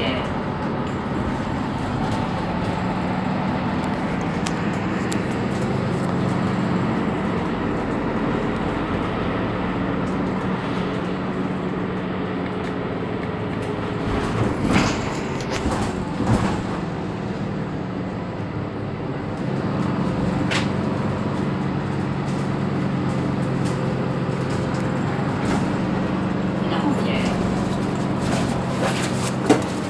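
A bus engine idles with a low, steady hum close by.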